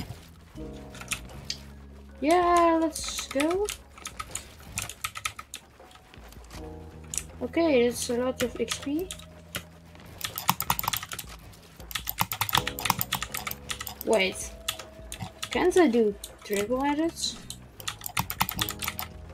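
Keys on a keyboard clatter rapidly.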